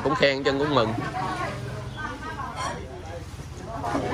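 Several people chat quietly in the background.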